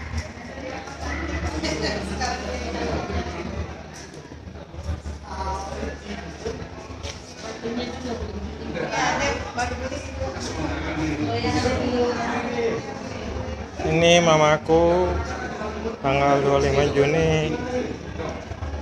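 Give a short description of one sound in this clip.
Several men and women talk in low voices nearby.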